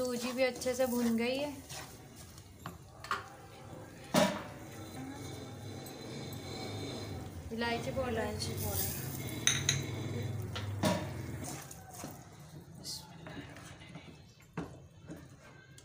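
A spatula scrapes and stirs a thick mixture in a metal pan.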